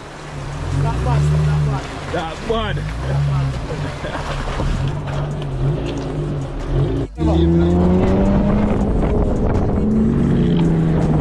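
A truck engine rumbles and revs up and down.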